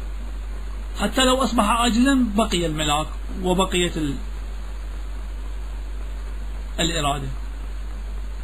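A man speaks slowly, heard through a microphone, with long pauses.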